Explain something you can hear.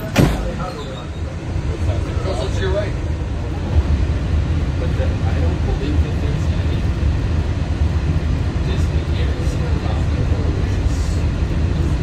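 A monorail train rumbles steadily along its track from inside the car.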